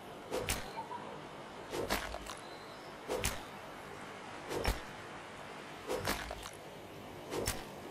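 A pickaxe chips at rock in steady, repeated blows.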